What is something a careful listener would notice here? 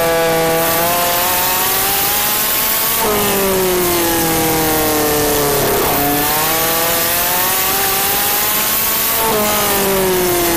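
A kart engine buzzes loudly up close, its pitch rising and falling as it speeds up and slows for corners.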